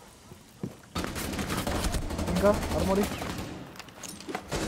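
Gunshots ring out in rapid bursts.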